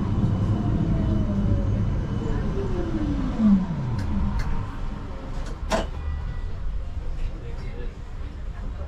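A tram rolls along its rails with a steady low rumble.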